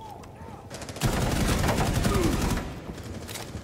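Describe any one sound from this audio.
A rifle fires a rapid burst of shots at close range.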